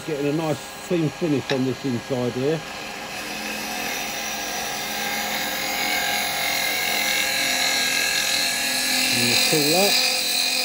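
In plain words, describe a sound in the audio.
A chisel scrapes and shaves wood on a spinning lathe.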